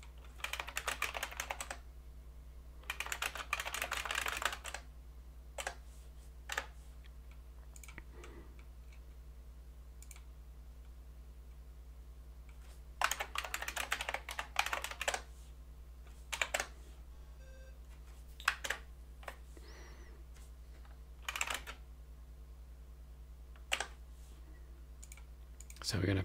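Keys clatter in quick bursts on a computer keyboard.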